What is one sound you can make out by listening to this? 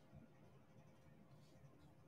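A small plastic bead clicks softly into place.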